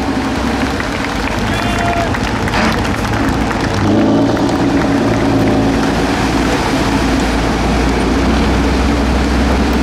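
A truck engine roars and revs loudly.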